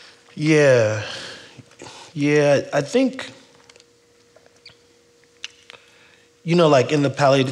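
A man speaks through a microphone, pausing between phrases.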